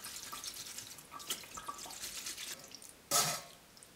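Water splashes in a sink as a metal sieve is rinsed.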